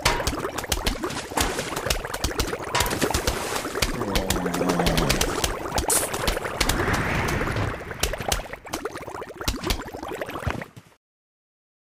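Plants fire rapid popping shots in a quick, busy stream.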